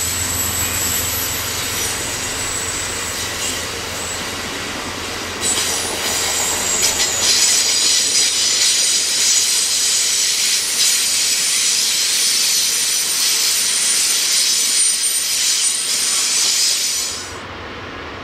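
Passenger cars rumble and squeal along the rails nearby.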